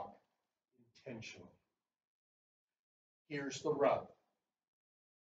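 An elderly man speaks with pauses.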